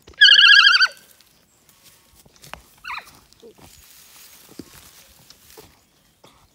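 A hand rubs wet fur with a soft rustle.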